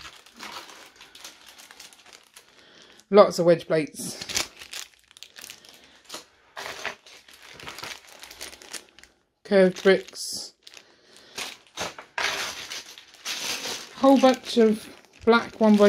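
Plastic bags crinkle and rustle as they are handled close by.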